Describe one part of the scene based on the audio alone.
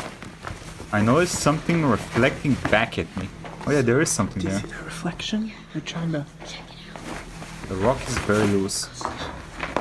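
A young man talks calmly and close to a microphone.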